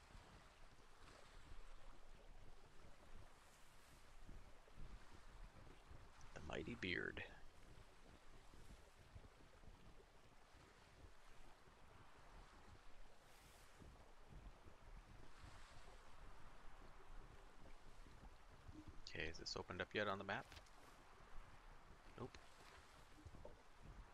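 Waves wash softly against a wooden ship's hull.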